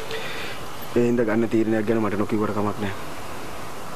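A man speaks in a calm, serious tone nearby.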